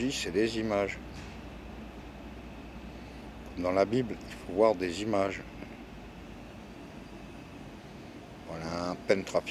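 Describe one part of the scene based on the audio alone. An older man speaks close to the microphone in short, calm bursts with pauses.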